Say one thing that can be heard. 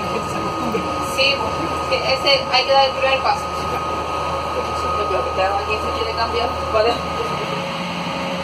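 An electric shuttle minibus hums as it drives, heard from inside.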